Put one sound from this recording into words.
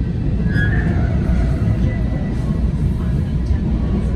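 A passing train rushes by close outside.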